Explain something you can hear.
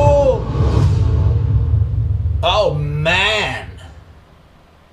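A man exclaims loudly with animation, close to a microphone.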